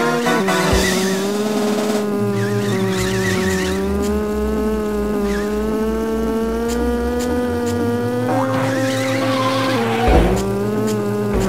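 A small kart engine buzzes steadily, its pitch shifting up and down now and then.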